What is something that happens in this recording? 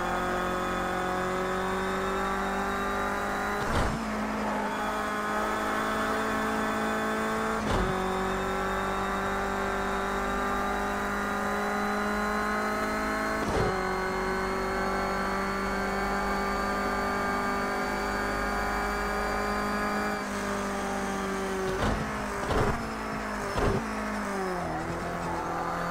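A racing car engine roars at high revs, rising in pitch through each gear.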